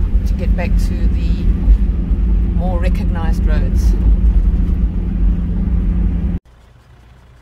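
A vehicle's engine rumbles loudly from inside as it drives over a gravel track.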